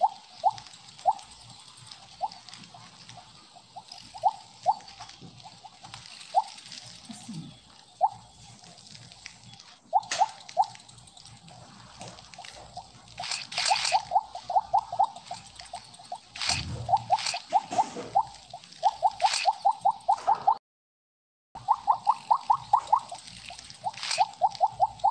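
Short, bright electronic blips chime over and over, coming faster and faster.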